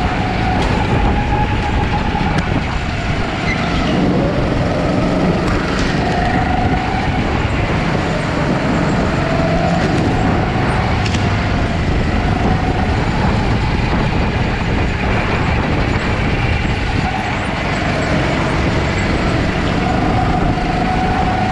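Go-kart engines rise and fall in pitch as the karts speed up and slow down.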